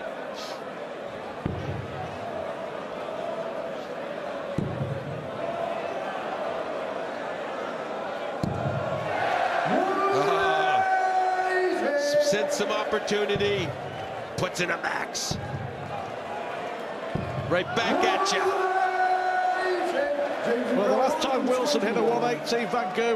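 A large crowd cheers and chants loudly in a big echoing hall.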